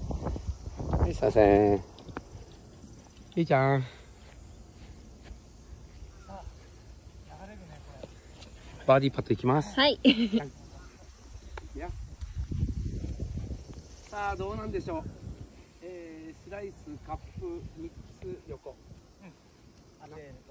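A man talks and calls out nearby.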